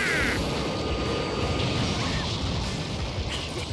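A huge explosion rumbles on.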